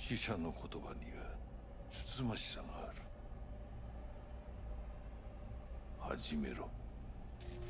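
A man speaks calmly and low, close by.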